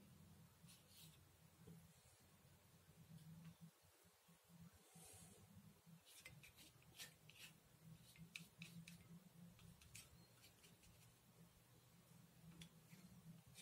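A paintbrush dabs and scrapes lightly on paper.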